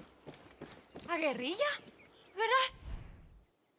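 A man speaks in distress.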